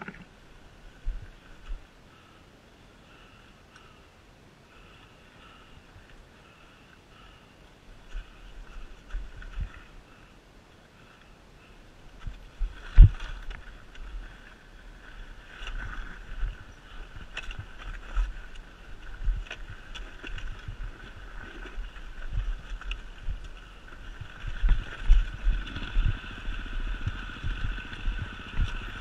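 Tyres bump and thud over rough, rocky ground.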